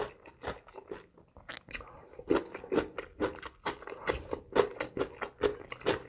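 Fingers squish and rustle through rice on a plate.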